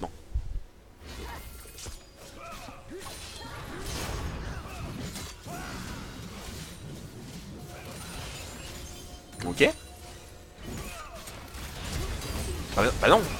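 Video game battle effects clash and crackle.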